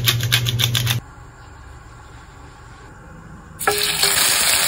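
Oil pours softly into a pan.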